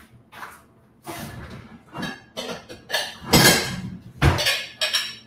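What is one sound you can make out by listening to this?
A drawer slides open and shut.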